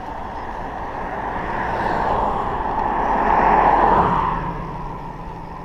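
A car approaches on an asphalt road and passes by.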